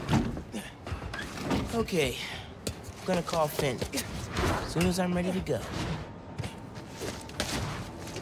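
Hands and feet knock and scrape against a brick wall while climbing.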